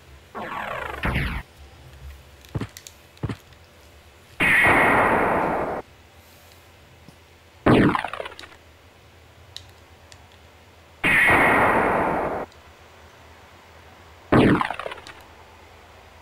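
A shimmering magical whoosh sounds again and again, each burst ending abruptly.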